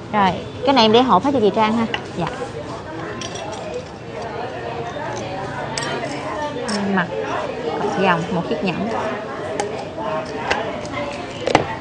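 Jewellery clinks against a box.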